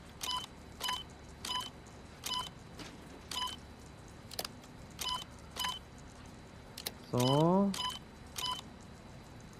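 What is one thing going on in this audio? Short electronic beeps chirp from a computer terminal.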